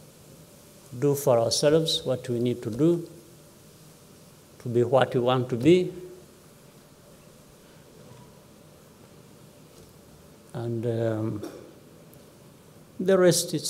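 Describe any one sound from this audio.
A man speaks slowly and calmly into a microphone, with pauses between phrases.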